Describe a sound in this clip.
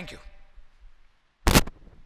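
A man speaks briefly and quietly through a microphone.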